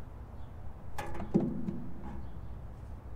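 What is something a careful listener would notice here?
A metal tool clanks against an engine block.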